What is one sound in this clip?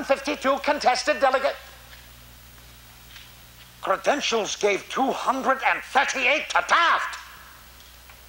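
An elderly man speaks loudly and with animation into a microphone, heard through a loudspeaker.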